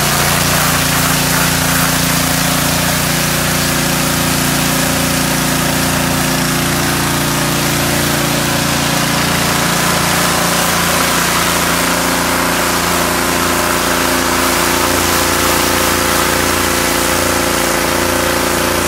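A jet of water hisses loudly against a wooden fence.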